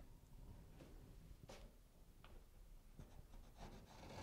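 Small taps and scrapes sound as something is fixed against a wall.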